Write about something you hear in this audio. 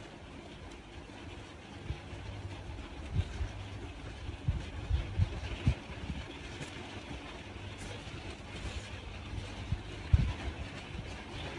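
Hands brush and handle yarn with faint rubbing.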